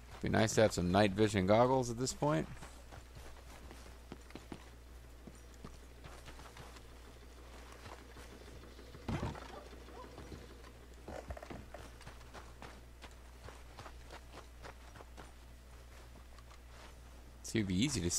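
Footsteps run quickly over dirt and wooden boards.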